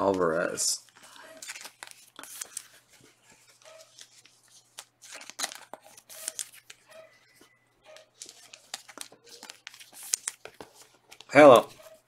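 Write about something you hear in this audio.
Cards in plastic sleeves rustle and click as they are handled.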